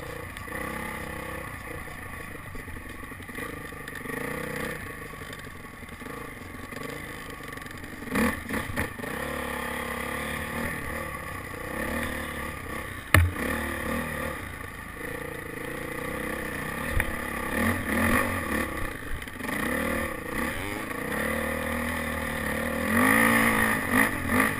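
A dirt bike engine revs and hums up close as the bike rides along a trail.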